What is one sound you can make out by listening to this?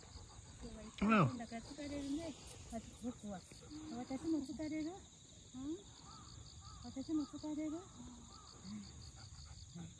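A woman talks softly to dogs close by.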